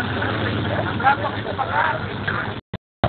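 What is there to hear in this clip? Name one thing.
Men talk and call out nearby, outdoors.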